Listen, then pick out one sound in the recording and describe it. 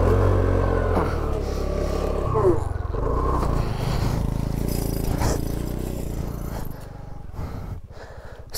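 A motorcycle engine rumbles at low idle, then dies away.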